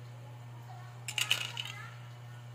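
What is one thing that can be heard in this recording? A metal spoon scrapes against a metal pot.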